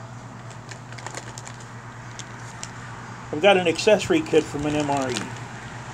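A plastic bag crinkles and rustles.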